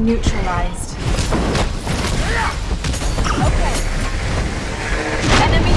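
Energy blasts from a game fight ring out.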